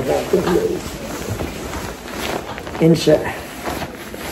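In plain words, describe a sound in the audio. A young man speaks briefly and casually close by.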